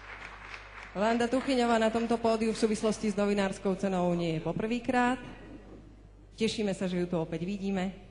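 A woman speaks calmly into a microphone, heard through loudspeakers in a large hall.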